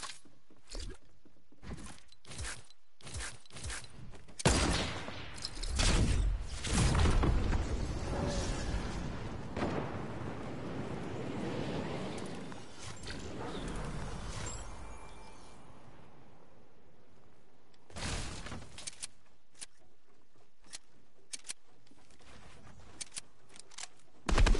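Quick footsteps tap in a game.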